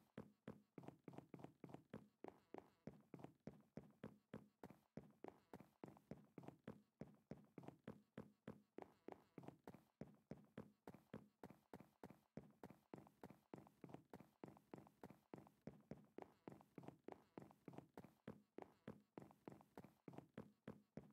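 Footsteps tap quickly and steadily on wooden boards.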